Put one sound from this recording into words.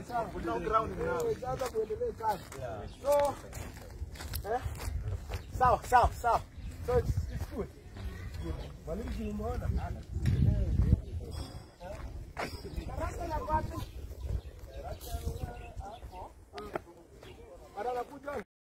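Several men talk with animation outdoors, close by.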